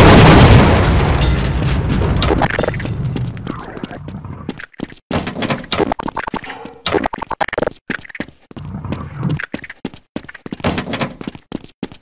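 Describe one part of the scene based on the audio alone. Footsteps patter on hard ground.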